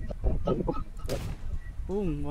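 A rifle fires a single sharp shot.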